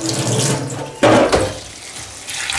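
A bowl knocks against a metal sink.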